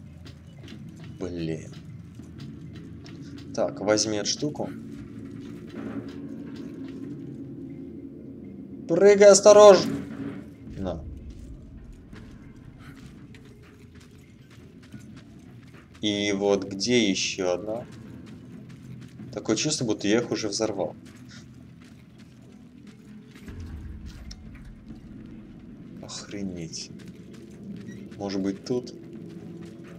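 Footsteps thud on metal and dirt.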